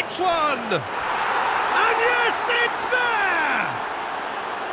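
A stadium crowd cheers loudly after a goal.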